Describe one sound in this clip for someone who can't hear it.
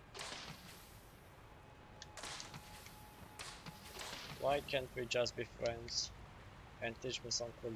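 Footsteps crunch over dirt and grass.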